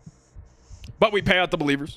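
A man speaks loudly and with animation into a microphone.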